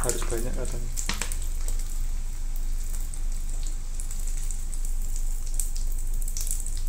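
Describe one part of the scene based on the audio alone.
Oil sizzles and crackles around dough balls frying in a pan.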